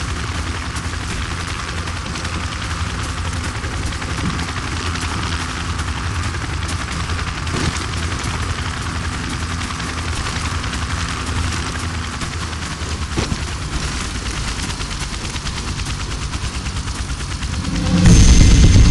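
A helicopter's rotor thumps steadily nearby and grows louder.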